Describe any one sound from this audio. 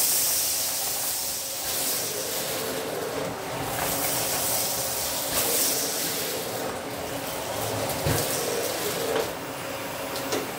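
A vacuum cleaner runs with a steady roar.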